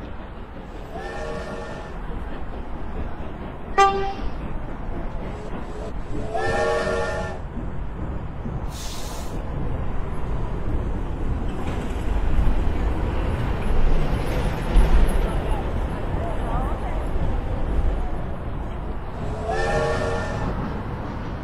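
A steam locomotive whistle blows several times.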